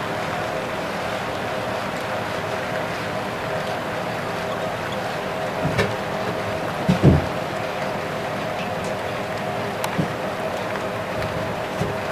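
A model train rumbles steadily along its track.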